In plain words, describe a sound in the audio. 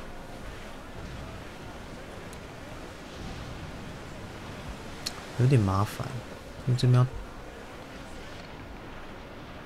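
Wind blows through a ship's sails and rigging.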